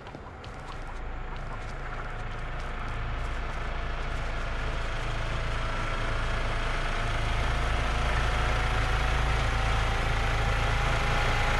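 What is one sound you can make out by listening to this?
Footsteps tread on a dirt path.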